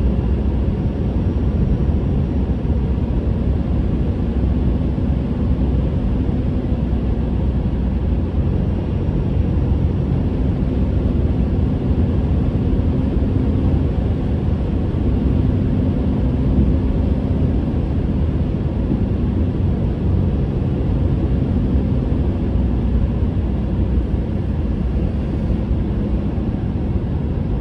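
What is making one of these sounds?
Tyres roar steadily on the road.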